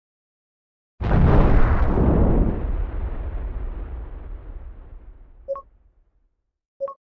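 A huge explosion booms and slowly rumbles away.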